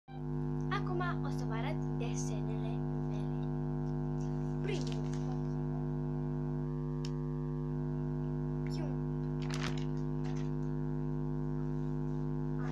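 A young girl talks close to the microphone with animation.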